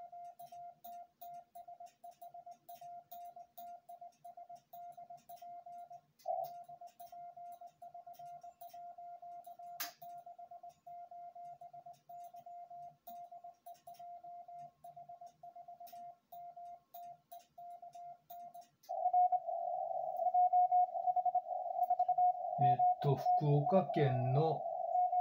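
Morse code beeps sound from a radio in a quick, even rhythm.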